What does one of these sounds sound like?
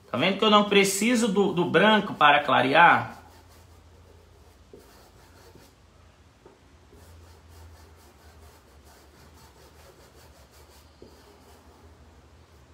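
A paintbrush softly strokes across fabric.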